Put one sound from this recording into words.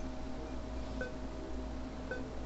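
A short electronic menu blip sounds.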